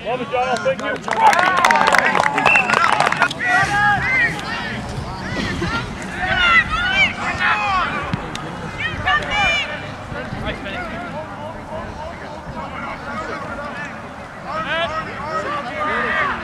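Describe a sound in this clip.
Players shout and call out across an open field outdoors.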